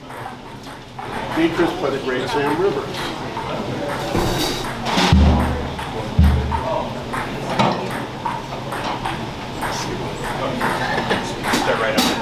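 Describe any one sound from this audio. Saxophones play a jazz tune together.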